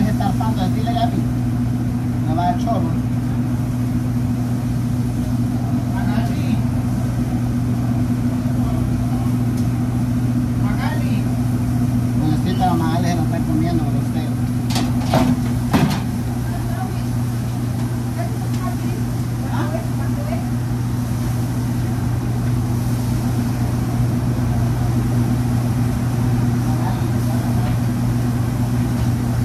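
An exhaust hood hums steadily.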